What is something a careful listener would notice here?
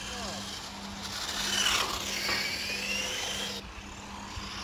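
A toy car's electric motor whines, rising and falling in pitch as it speeds past.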